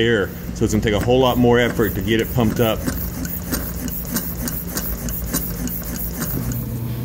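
A hand pump clicks rhythmically as it is worked.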